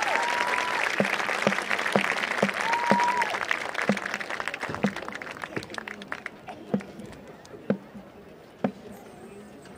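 A marching band's drum beats out a steady count.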